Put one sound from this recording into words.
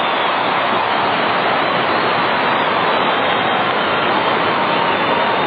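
A large stadium crowd cheers and roars loudly.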